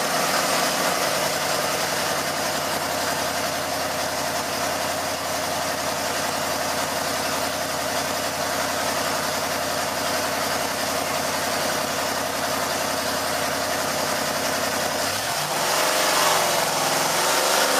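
A V8 engine idles loudly with a lumpy, rough rumble, then revs up near the end.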